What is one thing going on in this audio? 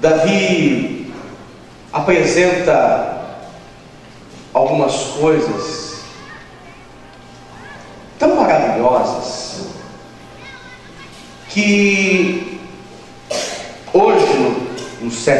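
A young man speaks with animation through a microphone, heard over loudspeakers in an echoing room.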